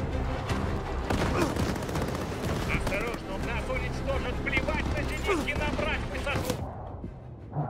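Explosions and gunfire roar loudly around a plane.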